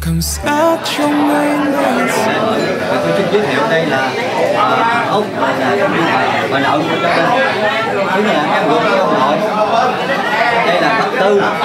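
An elderly man speaks calmly nearby.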